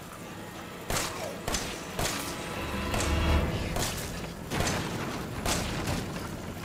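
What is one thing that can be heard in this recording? A pistol fires single loud shots in an echoing room.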